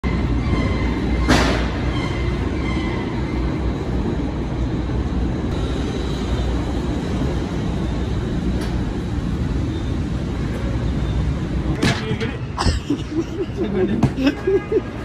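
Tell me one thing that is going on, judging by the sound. Conveyor machinery rumbles in a large warehouse.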